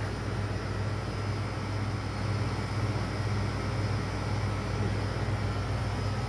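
A freezer hums steadily and low.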